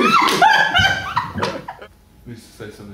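A young woman laughs loudly and openly nearby.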